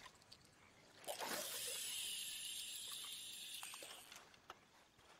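A fishing line whizzes out from a reel as it is cast.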